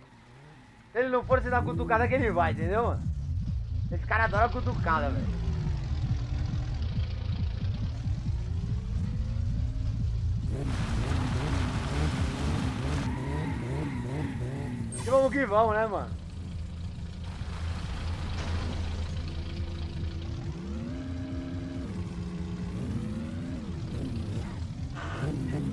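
A car engine revs and roars loudly.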